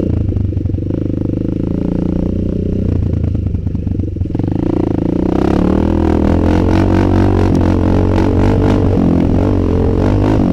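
Tyres rumble over a bumpy dirt track.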